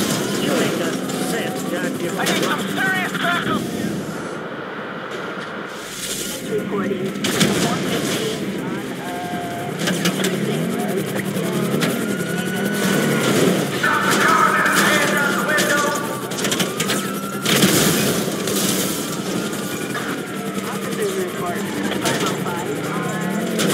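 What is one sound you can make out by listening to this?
A sports car engine roars and revs.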